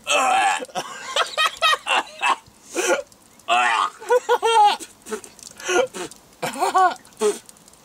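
A man laughs loudly up close.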